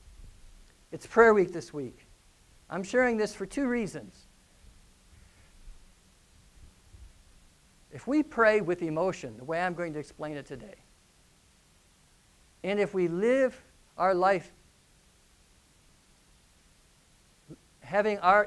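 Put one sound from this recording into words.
A middle-aged man speaks with animation through a clip-on microphone, with pauses.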